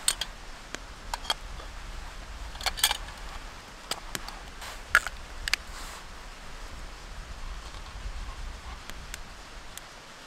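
A metal lantern clinks as it is handled.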